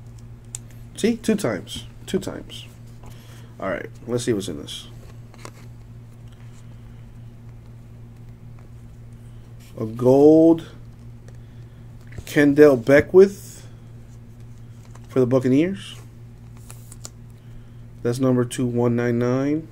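Stiff cards rustle and flick between hands.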